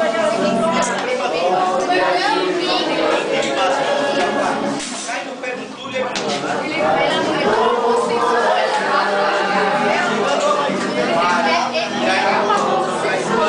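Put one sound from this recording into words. Several elderly men and women talk and chatter close by.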